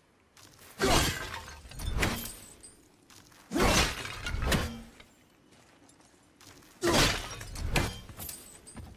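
An axe swings and strikes with heavy thuds.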